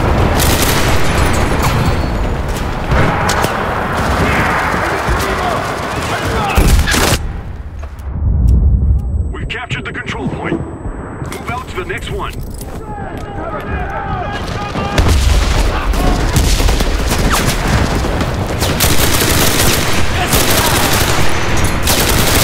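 A submachine gun fires in rapid, loud bursts.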